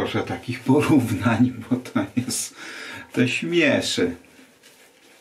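A man talks close by, with animation.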